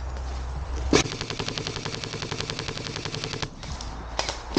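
An airsoft rifle fires a rapid burst of shots close by.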